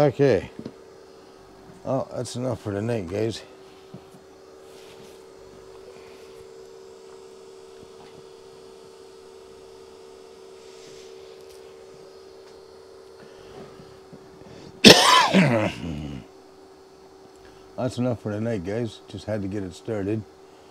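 An older man talks calmly close by.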